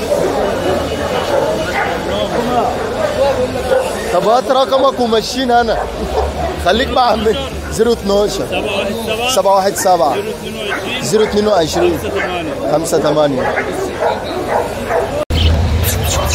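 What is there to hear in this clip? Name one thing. Several men talk nearby with animation.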